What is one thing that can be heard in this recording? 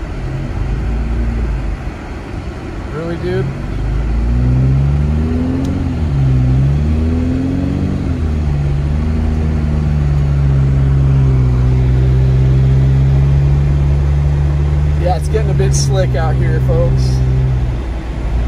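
A car engine hums steadily, rising and falling in pitch as the car drives.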